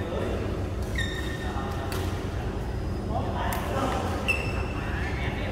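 Shoes squeak sharply on the court floor.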